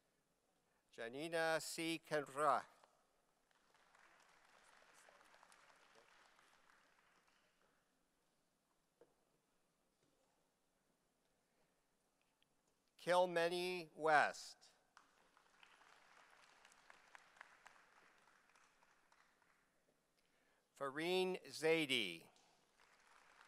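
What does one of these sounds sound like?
A man announces names through a microphone in a large hall, with short pauses between them.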